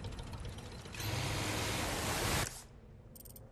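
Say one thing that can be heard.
A small motorboat churns loudly through water.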